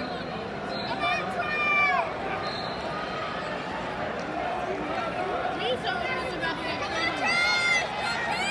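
Shoes squeak sharply on a mat in quick bursts.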